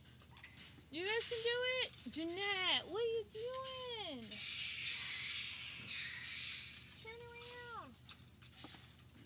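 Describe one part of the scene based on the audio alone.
Fruit bats give loud, shrill squealing calls close by.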